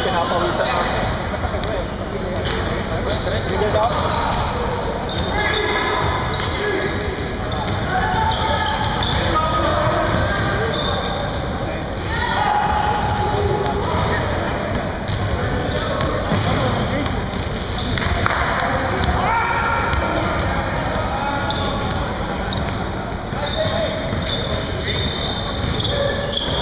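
Men shout and call out across the gym.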